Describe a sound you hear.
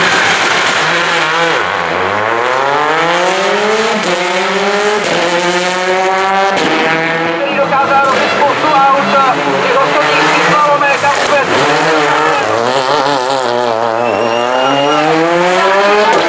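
A turbocharged four-cylinder rally car engine revs hard through the gears.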